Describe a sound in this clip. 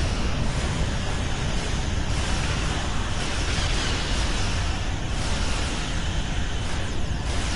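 Explosions rumble deeply.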